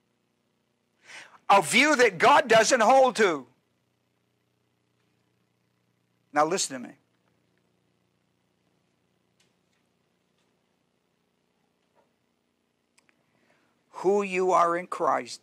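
An older man speaks with animation through a microphone, in short bursts between pauses.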